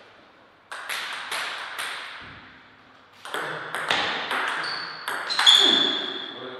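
A ping-pong ball clicks sharply back and forth off paddles and a table in a reverberant hall.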